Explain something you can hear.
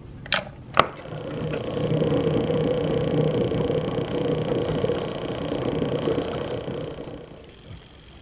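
A coffee maker hums and gurgles as it brews.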